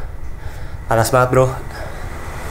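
A young man exclaims in surprise close by.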